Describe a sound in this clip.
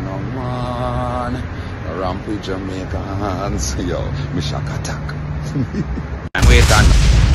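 A man talks with animation, close to a phone microphone.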